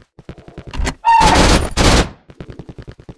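A gun fires loudly in a short burst.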